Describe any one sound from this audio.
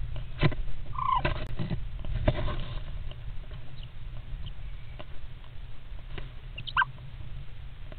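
Birds give short chirps up close.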